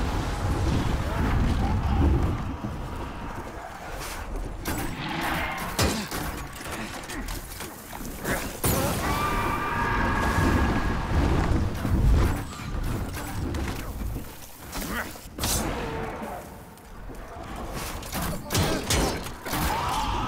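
Footsteps clatter on stone.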